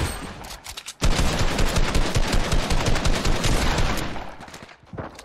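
A gun fires in rapid bursts of shots.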